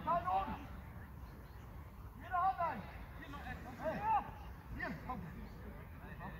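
Men shout to each other from a distance across an open field.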